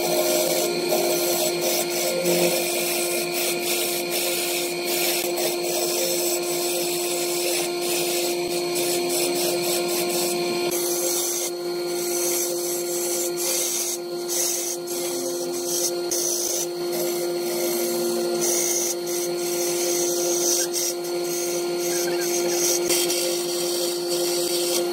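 A gouge cuts into spinning wood on a lathe, with shavings hissing and rattling.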